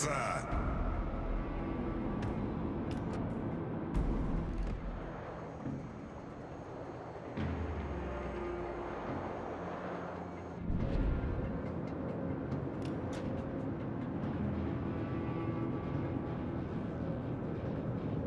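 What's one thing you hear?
Waves wash and churn around a large ship moving through the sea.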